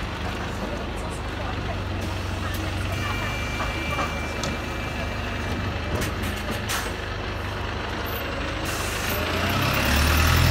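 A bus engine idles with a low rumble nearby.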